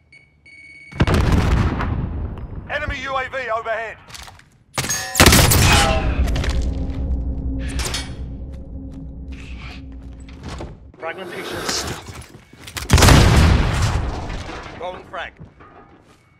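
Loud gunshots and blasts burst out in quick bursts.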